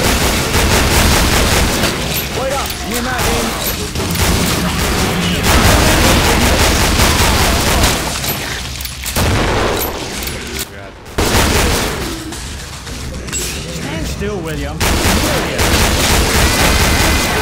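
Twin revolvers fire rapid shots.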